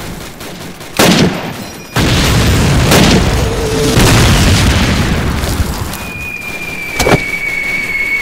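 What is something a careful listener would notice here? Rifles fire sharp shots.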